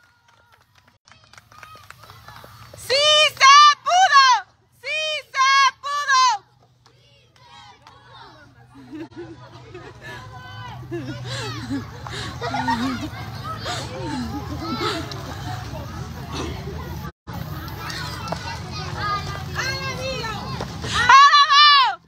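A crowd of women and children chatter outdoors.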